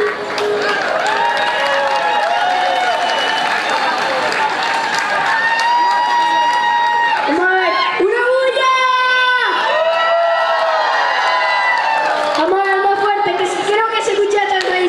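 A young man sings into a microphone through loud speakers.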